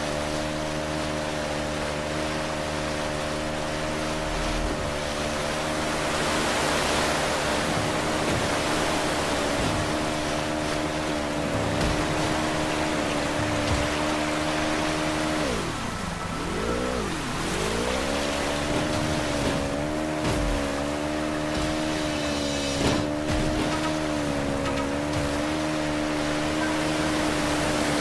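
A jet ski engine drones steadily, dipping and rising in pitch as it revs.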